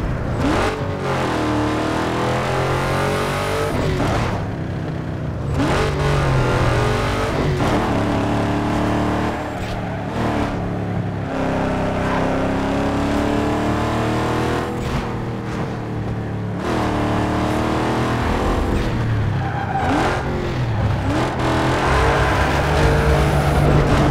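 A car engine revs high and shifts gears as it races along.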